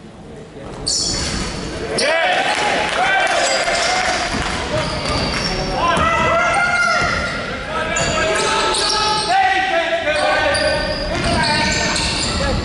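Young players shout and call out across an echoing hall.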